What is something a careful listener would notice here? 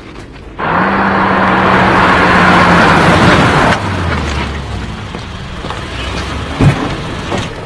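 A car engine hums as the car rolls slowly along.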